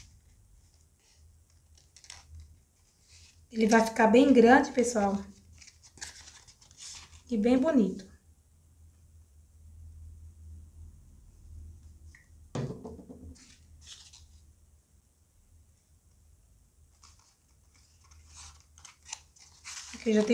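Stiff paper petals rustle and crinkle as they are pressed together.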